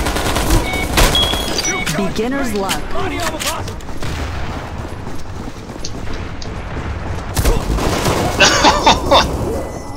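Rapid gunfire crackles in short bursts.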